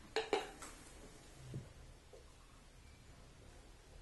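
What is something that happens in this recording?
A man drinks from a bottle.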